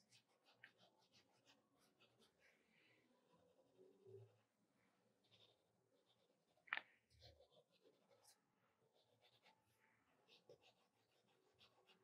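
A pencil scratches and rubs on paper close by.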